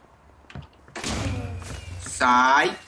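A game character is struck with sharp hit sounds.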